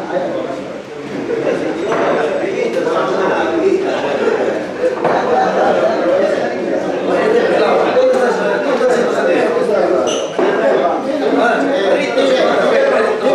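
Several men talk and chatter at once, close by.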